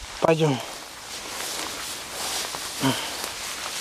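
Tall grass rustles as a dog pushes through it.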